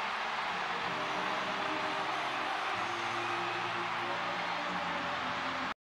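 A large crowd cheers and screams loudly in a big arena.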